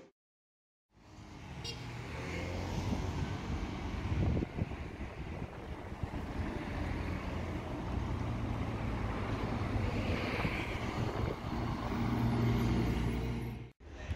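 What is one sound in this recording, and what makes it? Cars drive by on a nearby road.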